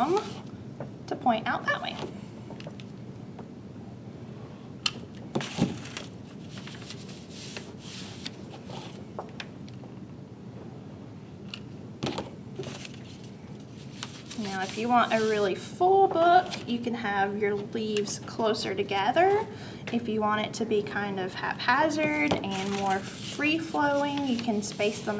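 Paper pages rustle and crinkle.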